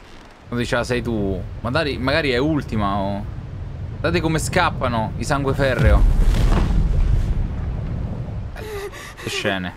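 A volcano erupts with a deep, heavy rumble.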